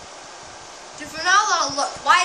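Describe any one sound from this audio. A young child squeals in a high voice.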